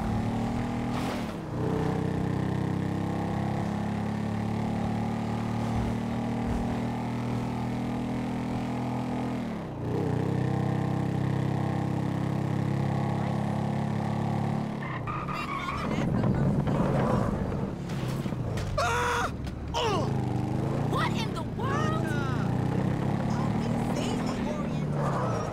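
A motorcycle engine hums as the bike cruises along a road.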